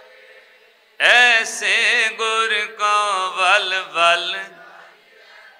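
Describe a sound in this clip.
A middle-aged man sings loudly through a microphone.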